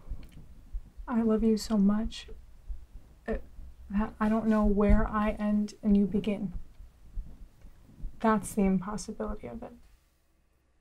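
A young woman speaks tensely and close by.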